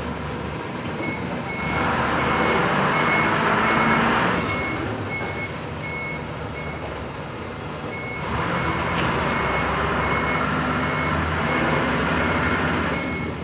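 A forklift's reversing alarm beeps steadily.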